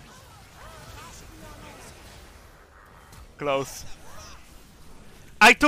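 Video game spell and combat effects whoosh and burst.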